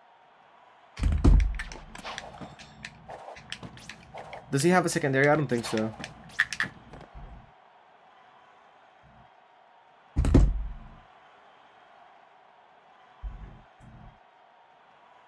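Video game punches and impacts thud and crash in bursts.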